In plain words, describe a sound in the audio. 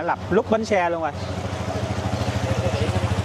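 A motor scooter engine hums close by.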